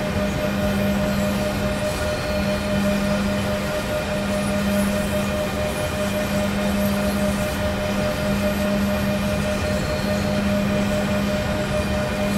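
A locomotive engine hums steadily.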